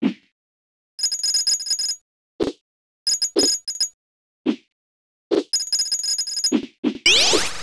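Coins chime in quick bright runs as they are picked up.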